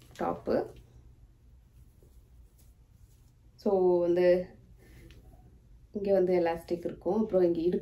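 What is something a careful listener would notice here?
A woman talks close by with animation.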